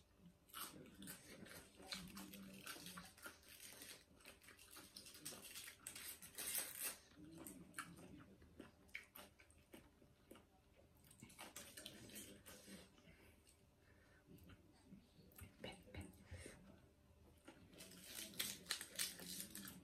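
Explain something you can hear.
Crisp wafers crackle and crunch as hands break them apart close by.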